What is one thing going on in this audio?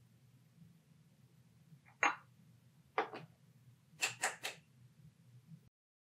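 Glasses clink as coffee is poured.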